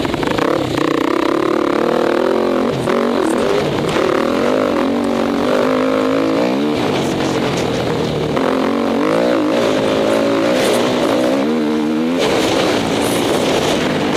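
A dirt bike engine revs loudly up close, rising and falling as gears shift.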